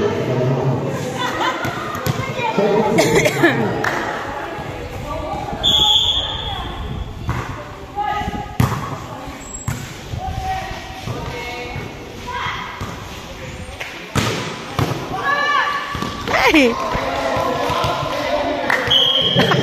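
Young women call out and chatter across an echoing covered court.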